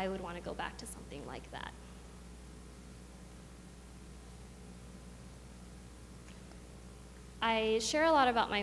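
A young woman speaks calmly into a microphone, pausing between phrases.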